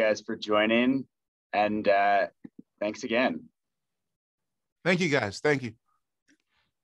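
A man speaks with animation over an online call, in short bursts.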